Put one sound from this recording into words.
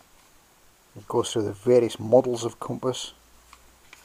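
A hand turns a paper page of a book.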